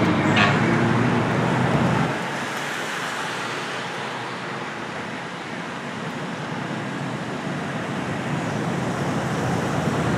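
Cars drive past on a road.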